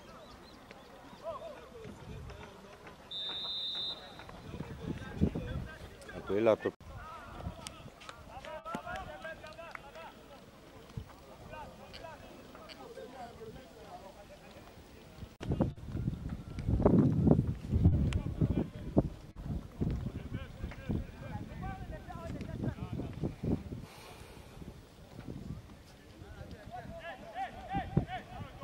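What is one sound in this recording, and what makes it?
Young men shout to each other across an open field, some distance away.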